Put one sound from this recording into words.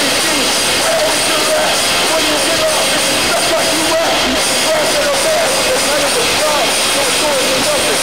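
A loud band plays distorted electric guitars and pounding drums in an echoing hall.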